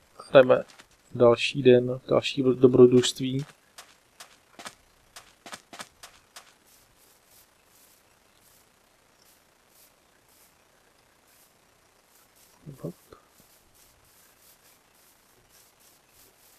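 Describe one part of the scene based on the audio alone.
Footsteps crunch softly over sand and grass.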